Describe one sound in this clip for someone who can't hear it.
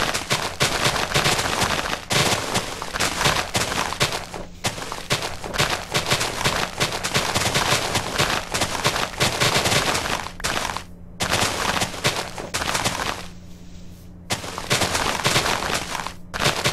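Footsteps crunch on grass in a video game.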